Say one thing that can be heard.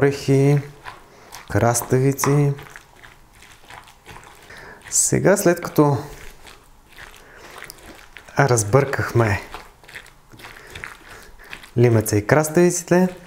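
A spoon stirs and scrapes through a chunky mixture in a bowl.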